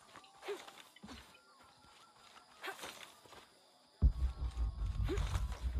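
Footsteps crunch on dirt.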